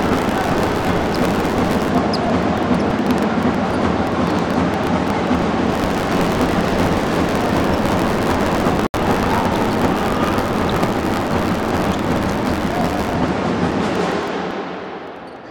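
A crowd cheers and chatters loudly in a large echoing hall.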